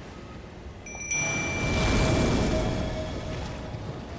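A magical shimmer rings out with a bright chime.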